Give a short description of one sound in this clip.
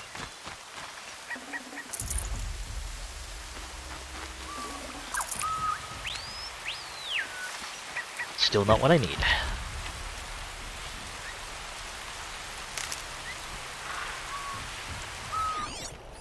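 Footsteps rustle through dense leafy plants.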